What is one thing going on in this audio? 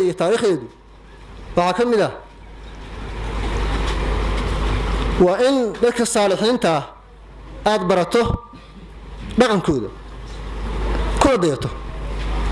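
A man chants in a drawn-out, melodic voice through a microphone and loudspeaker, with a ringing echo.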